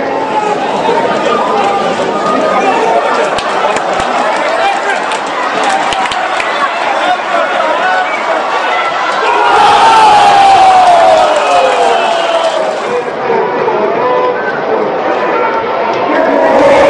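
A large crowd chants and sings throughout in an open-air stadium.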